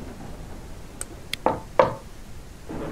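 Knuckles knock several times on a wooden door.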